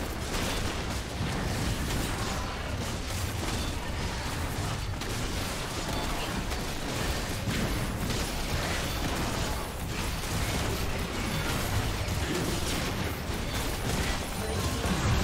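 Game combat effects clash, crackle and boom without pause.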